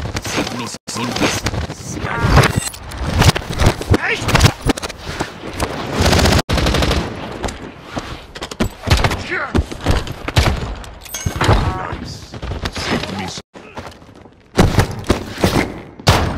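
Heavy blows and knife stabs land with thuds.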